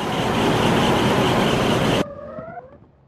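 A giant fan roars, blowing a strong rush of air.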